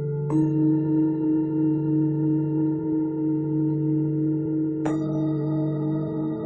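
A steady electronic tone hums, changing pitch twice.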